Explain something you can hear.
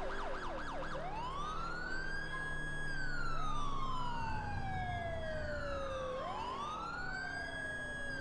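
A police car siren wails, rising and falling slowly.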